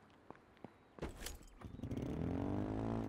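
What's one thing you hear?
A small motor vehicle engine starts and rumbles loudly.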